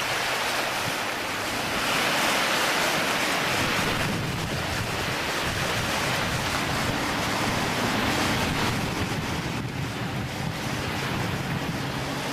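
Small waves lap against a pebbly shore.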